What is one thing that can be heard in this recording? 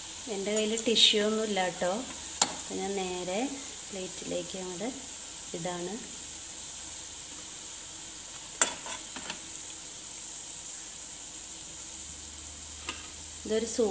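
A metal spoon clinks against a pan.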